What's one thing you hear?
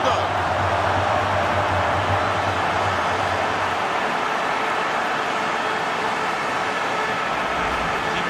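A large stadium crowd cheers and roars loudly throughout.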